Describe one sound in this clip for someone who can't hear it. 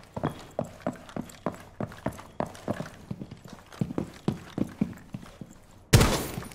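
Footsteps thud quickly and steadily on a wooden floor indoors.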